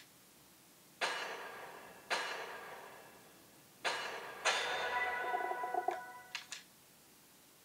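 Bright chiming game sounds ring out.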